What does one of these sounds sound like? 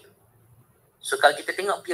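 A man speaks through an online call.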